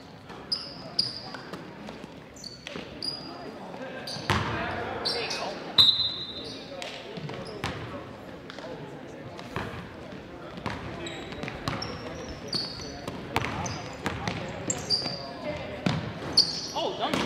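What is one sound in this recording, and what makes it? A crowd of spectators murmurs in a large echoing gym.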